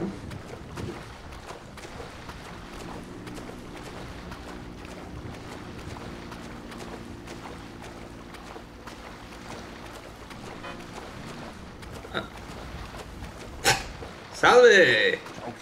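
Waves wash and churn around a swimmer.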